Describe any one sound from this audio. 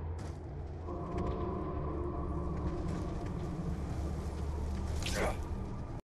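A low wind rumbles steadily.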